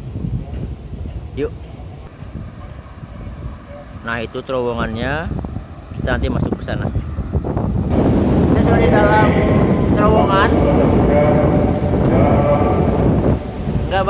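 Wind rumbles and buffets against the microphone.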